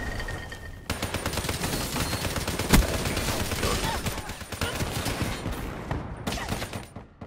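Rapid automatic gunfire rattles loudly and close.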